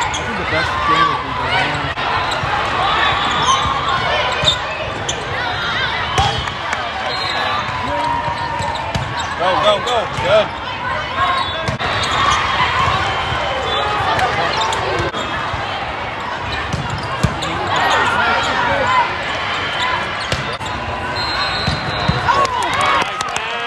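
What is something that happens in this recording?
Many voices of a crowd chatter and call out in a large echoing hall.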